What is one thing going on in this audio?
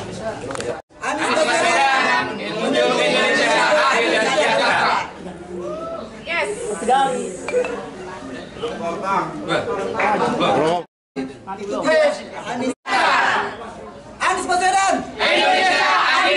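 A group of men and women shout a slogan together loudly.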